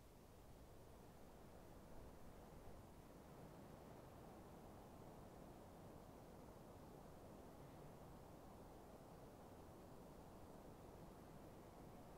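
Armoured footsteps clank along stone.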